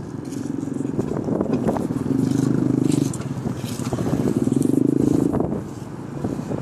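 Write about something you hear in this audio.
A motorbike engine idles close by.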